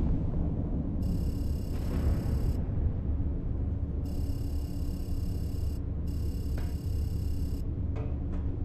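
Electronic chirping beeps sound in bursts.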